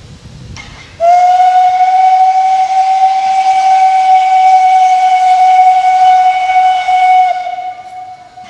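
A steam locomotive whistle blows loud and steady, then stops.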